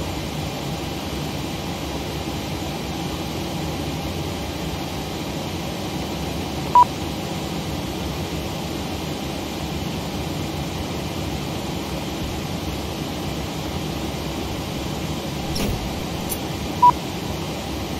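Jet engines hum steadily at idle.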